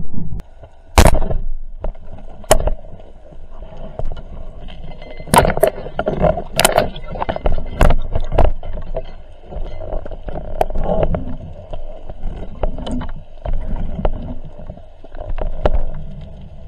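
Muffled clicks and knocks sound underwater as a speargun bumps against rocks.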